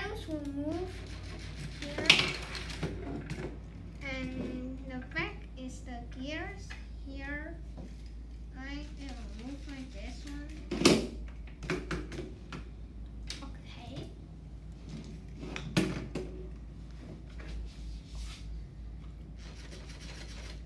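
Plastic bricks knock and clatter as a model is handled.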